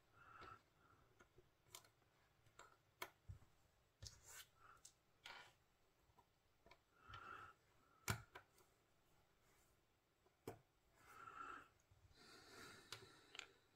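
Small plastic and metal parts click and tap as a knife is taken apart by hand.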